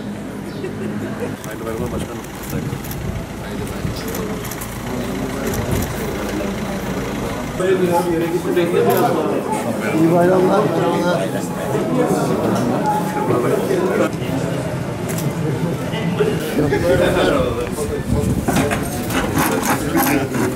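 Several men talk and greet each other nearby, outdoors.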